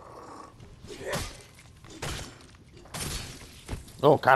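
An axe strikes flesh with heavy, wet thuds.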